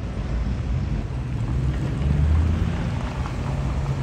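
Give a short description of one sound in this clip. A pickup truck drives past close by.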